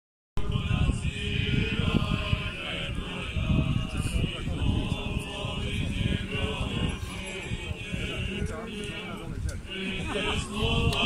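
A group of men chants together outdoors.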